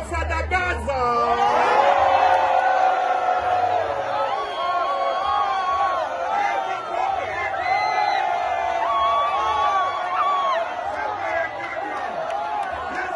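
A large crowd sings loudly together outdoors.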